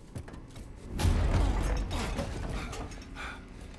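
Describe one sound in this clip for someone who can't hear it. A heavy body lands with a loud thud and a rumble.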